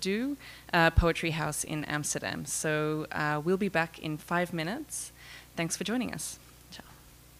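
A woman speaks calmly and clearly into a microphone, close by.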